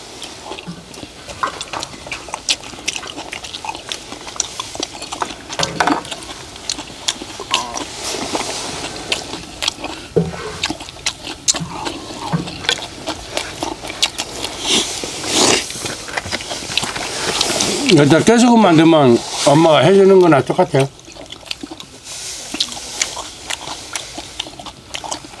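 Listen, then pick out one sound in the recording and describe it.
Men chew and slurp food loudly.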